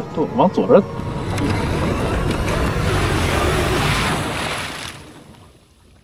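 Water splashes and churns around a vehicle.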